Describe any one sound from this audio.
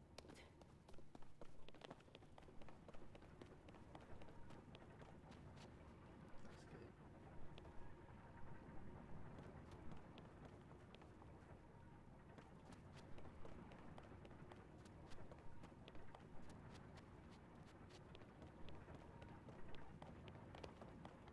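Footsteps tap on stone.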